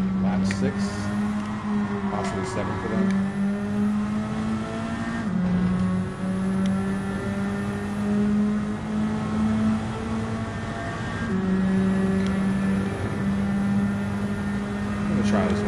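A racing car engine roars at high revs, shifting up through the gears.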